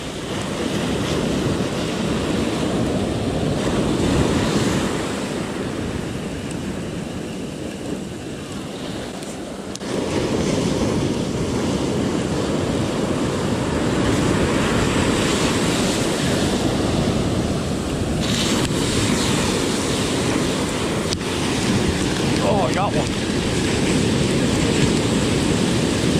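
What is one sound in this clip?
Wind blows hard across a microphone outdoors.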